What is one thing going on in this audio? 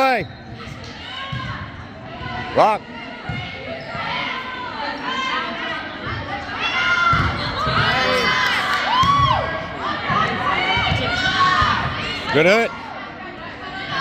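A volleyball thumps off hands and arms.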